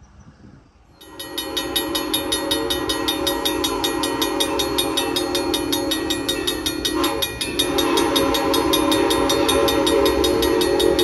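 A railway crossing bell rings rapidly and steadily.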